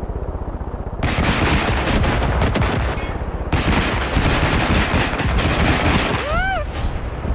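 A machine gun fires in long rapid bursts.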